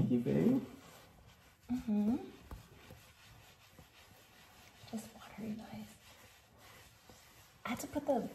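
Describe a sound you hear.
A towel rubs briskly against hair.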